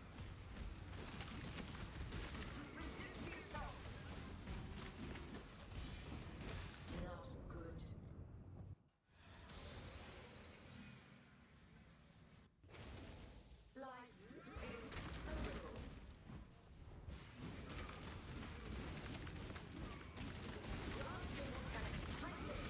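Magic blasts crackle and burst rapidly in a busy fight.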